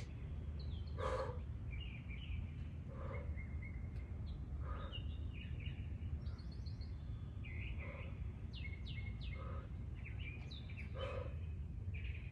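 A woman exhales sharply in a steady rhythm.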